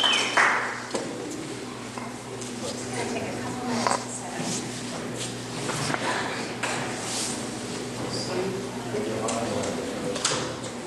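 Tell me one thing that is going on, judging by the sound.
A woman speaks calmly to a room.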